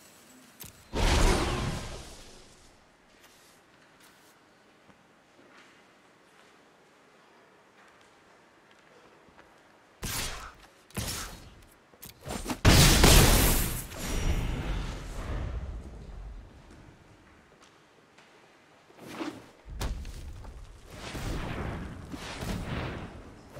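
Game cards whoosh and thud onto a table as a turn plays out.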